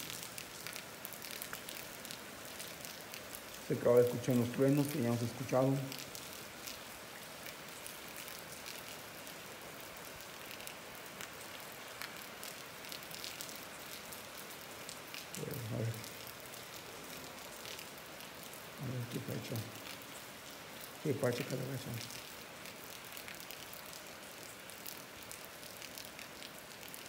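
Water runs and splashes across the ground.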